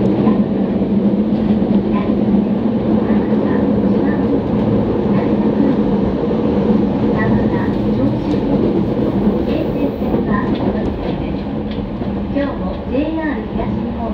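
An electric commuter train rumbles along the track at speed, heard from inside a carriage.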